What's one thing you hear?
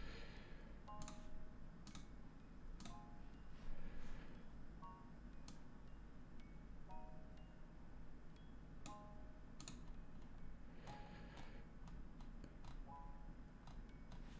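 Short electronic chimes ring out now and then.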